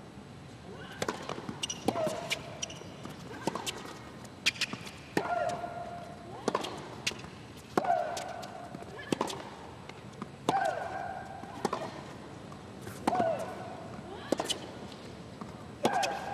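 Tennis balls are struck hard with rackets in a quick back-and-forth rally.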